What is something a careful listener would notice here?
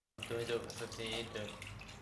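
Ice water pours and splashes into a bucket.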